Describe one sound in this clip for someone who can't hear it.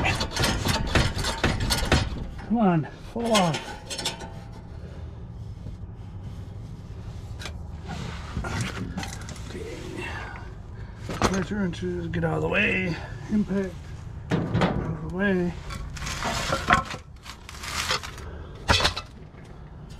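Metal clinks and clanks as an exhaust clamp is worked on by hand.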